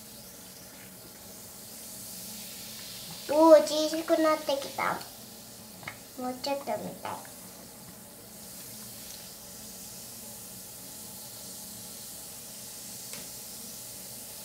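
A hand swishes and splashes water in a basin.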